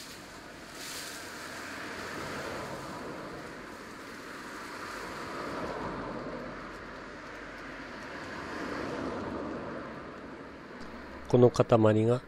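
Leafy branches rustle and scrape as they are handled.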